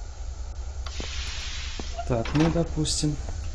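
A heavy metal door slides open with a grinding rumble.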